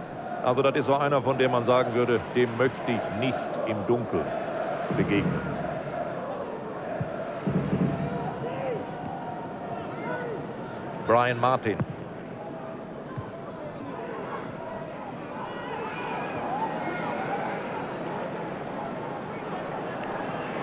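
A large stadium crowd murmurs and cheers throughout.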